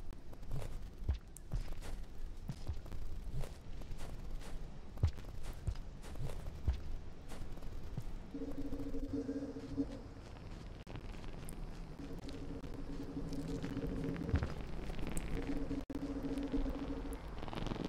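Soft, dull thuds land unevenly, like small feet hopping and landing.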